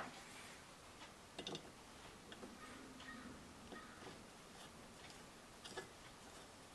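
Small metal parts click and rattle under fingers.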